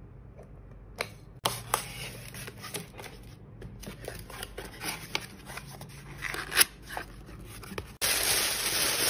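Cardboard taps and creaks as a box is folded.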